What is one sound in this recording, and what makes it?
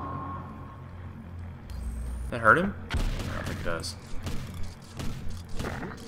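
Electronic game sound effects clatter and bleep.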